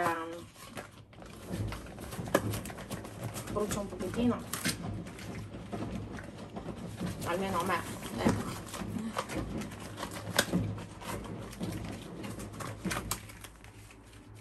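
Rubber gloves rustle and snap as they are pulled on.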